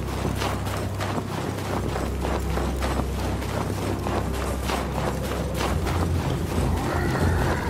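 Heavy footsteps run over sandy ground.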